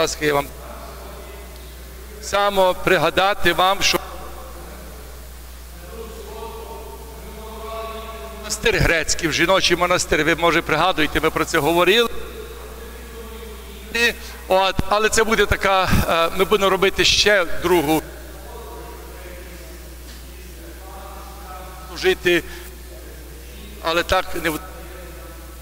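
A man chants loudly in a large echoing hall.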